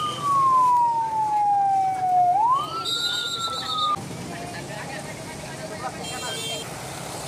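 Traffic rumbles past on a road nearby.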